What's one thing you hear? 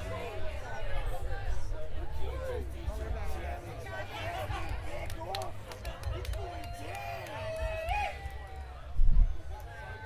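A lively crowd chatters and shouts outdoors.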